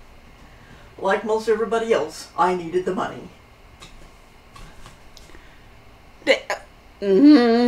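A young woman speaks close to a microphone, in short bursts with pauses.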